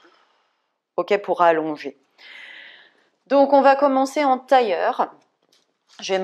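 A woman speaks calmly and clearly into a close microphone.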